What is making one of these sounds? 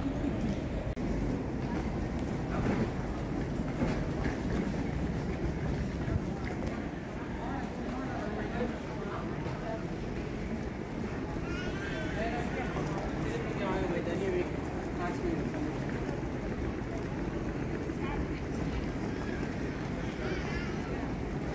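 Suitcase wheels roll over a hard floor.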